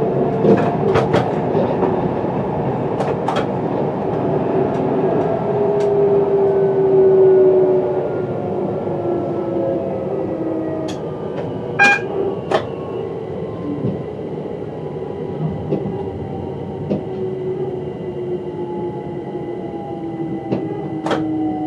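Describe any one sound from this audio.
Wheels click and clatter over rail joints.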